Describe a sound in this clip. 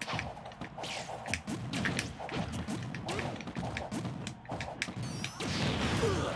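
Sharp punches and blasts from a video game fight crack again and again.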